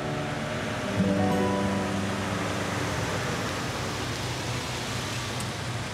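A car drives up slowly and stops.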